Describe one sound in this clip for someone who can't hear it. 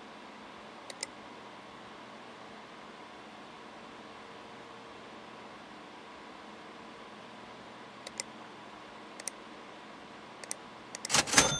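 Short, sharp clicks sound a few times.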